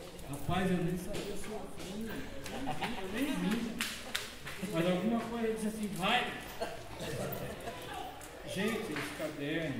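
An older man reads out aloud through a microphone and loudspeakers.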